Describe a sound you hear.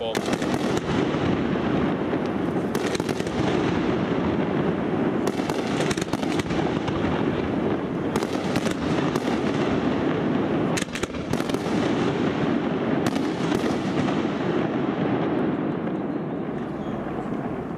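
Fireworks crackle and fizz.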